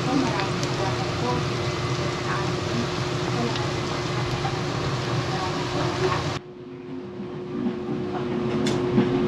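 Food sizzles and crackles steadily in hot oil in a pan.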